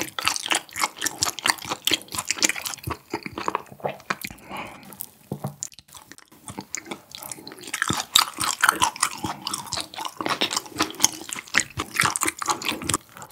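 A young man chews food loudly and wetly, close to a microphone.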